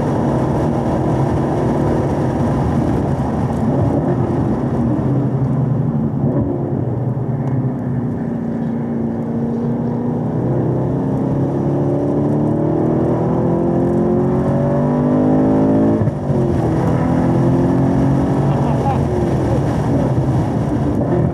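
A car engine roars loudly, its pitch falling as it slows and rising as it speeds up again.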